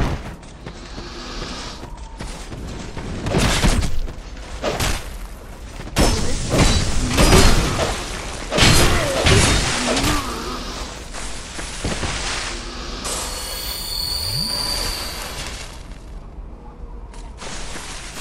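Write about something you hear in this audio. Armoured footsteps thud on the ground.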